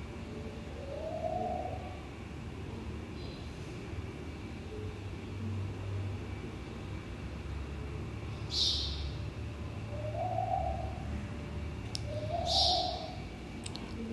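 Cloth rustles and swishes as hands smooth and fold it.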